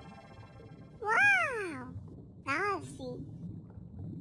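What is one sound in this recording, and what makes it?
A dolphin whistles in rising and falling tones.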